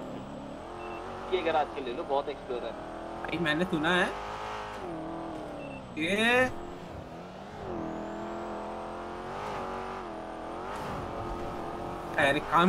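A car engine hums and revs as the car speeds up along a road.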